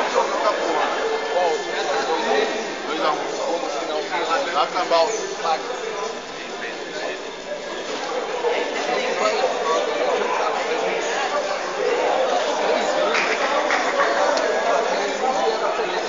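A group of players shouts and chatters together in a large echoing hall.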